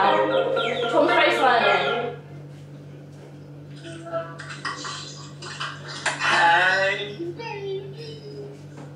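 A young woman's voice sings and talks nearby, loud at first and then quieter.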